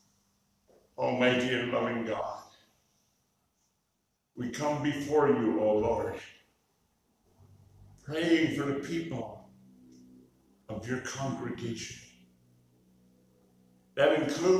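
An older man speaks slowly and calmly into a microphone, with pauses, in an echoing hall.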